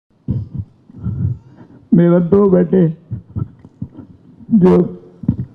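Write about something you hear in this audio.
An elderly man speaks with emotion into a microphone, heard through a loudspeaker.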